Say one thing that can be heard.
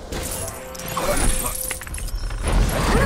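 Coins jingle and chime as they are collected.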